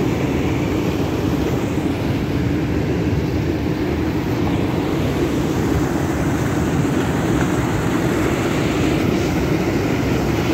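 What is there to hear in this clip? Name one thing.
Water roars steadily as it pours over a weir and churns below.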